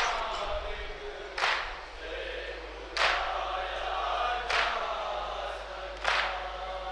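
A group of young men chant together in unison into a microphone.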